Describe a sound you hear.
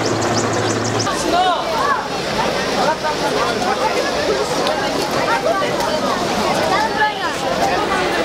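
A large crowd of men and women shouts and talks all at once outdoors.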